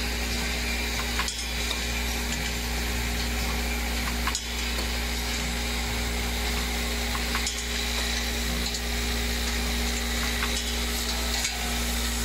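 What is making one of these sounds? A packaging machine hums steadily.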